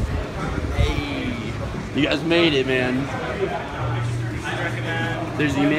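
A young man talks loudly and excitedly close by.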